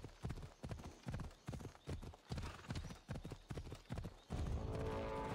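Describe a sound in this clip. Horse hooves pound rhythmically on a dirt path.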